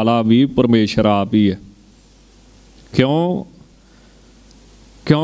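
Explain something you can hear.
A man sings or chants through a microphone in long, drawn-out phrases.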